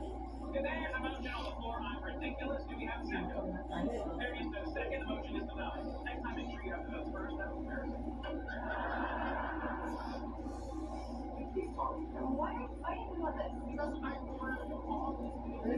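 A young girl chews and munches on crunchy food.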